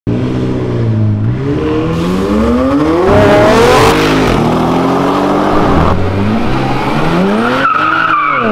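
A sports car engine roars loudly and revs up through the gears.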